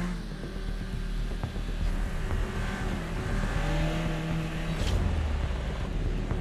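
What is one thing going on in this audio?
Racing car engines roar and whine as they accelerate.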